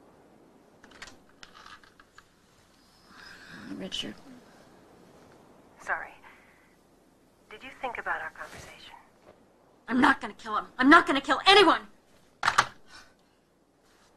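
A woman speaks sleepily into a telephone.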